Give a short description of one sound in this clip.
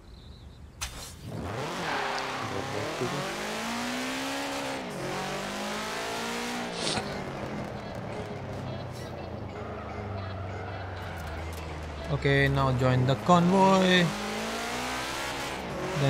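A car engine revs up and down as a car speeds along.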